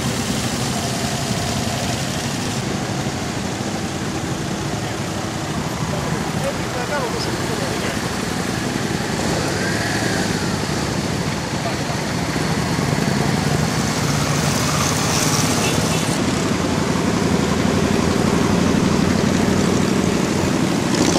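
Many motorcycle engines rumble as the bikes ride past close by.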